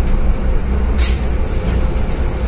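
Brakes hiss as the bus slows to a stop.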